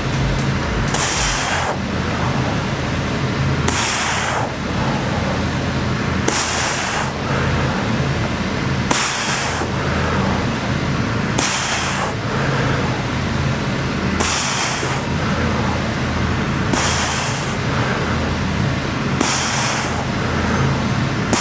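A man breathes out sharply with each lift of his hips.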